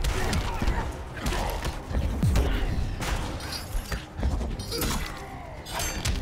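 Heavy punches and kicks land with loud thuds and whooshes.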